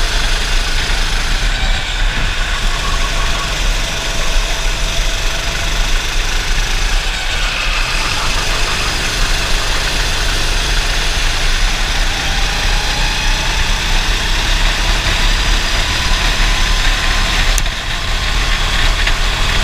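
A racing kart engine screams at full throttle close by.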